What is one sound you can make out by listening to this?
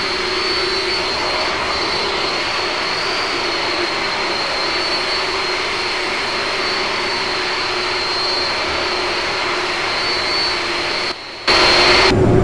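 Jet engines whine steadily as an airliner taxis outside.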